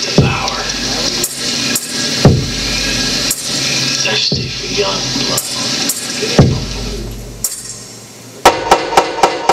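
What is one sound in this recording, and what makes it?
Loud electronic music plays with harsh noise and heavy booming hits.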